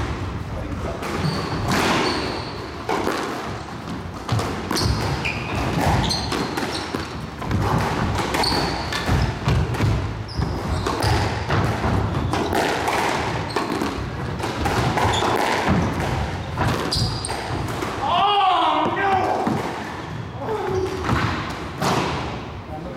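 A squash ball smacks off the walls with sharp echoing bangs in a large hall.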